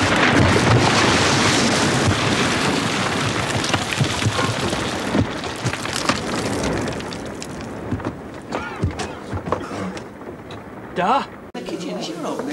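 Water gushes and sprays loudly.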